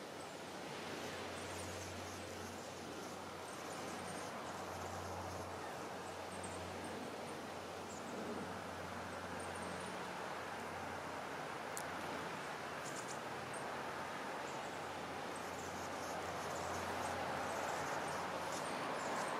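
Water laps gently and steadily.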